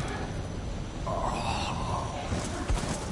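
A man screams in pain.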